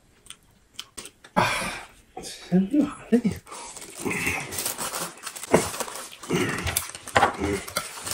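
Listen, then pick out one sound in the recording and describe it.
A man chews food noisily close to a microphone.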